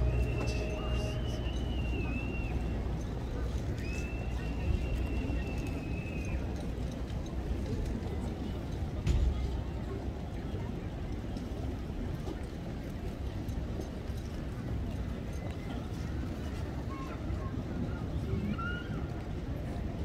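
Horse hooves thud softly on soft ground at a walk.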